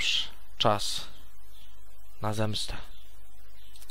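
A young man speaks calmly into a headset microphone.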